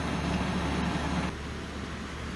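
A fire engine's motor idles with a low, steady rumble.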